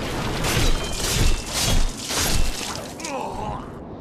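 Swords clash and strike armour in quick, heavy blows.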